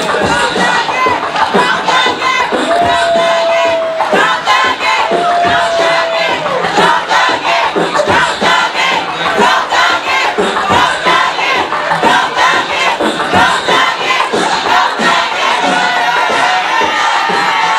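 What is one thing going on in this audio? A man raps loudly into a microphone over a loudspeaker.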